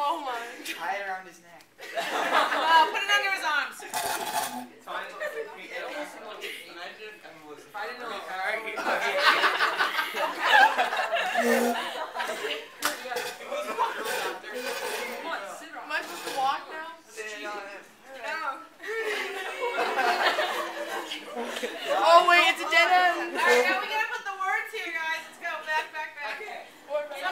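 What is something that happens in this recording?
A teenage girl laughs.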